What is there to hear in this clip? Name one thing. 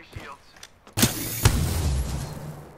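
A gun fires a short burst of loud shots.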